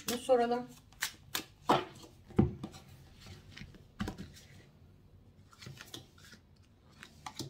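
Playing cards tap and slide softly onto a table.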